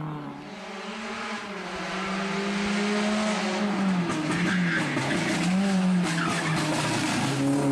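A rally car engine approaches loudly, revving up and down.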